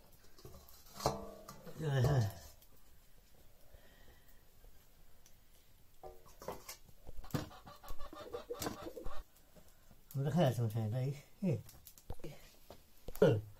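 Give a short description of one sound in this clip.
Metal pans clank against each other.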